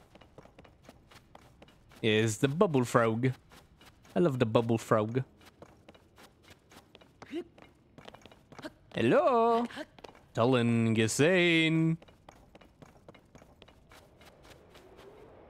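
Quick footsteps patter on rocky ground.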